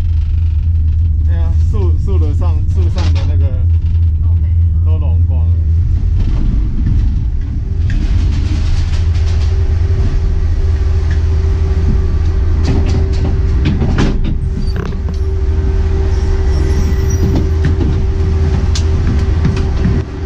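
A gondola cabin rumbles and hums steadily as it moves along its cable.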